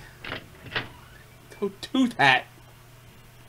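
A door creaks open.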